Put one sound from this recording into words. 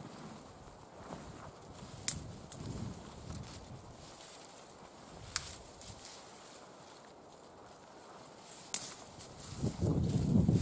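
Spruce branches rustle and swish as they are dragged and tossed.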